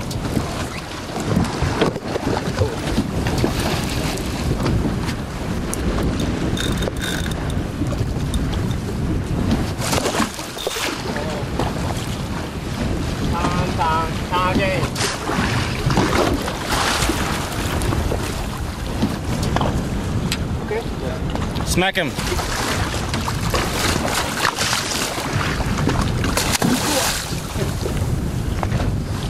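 Wind blusters over open water.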